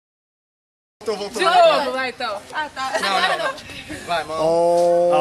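A group of young men and women talk and laugh together.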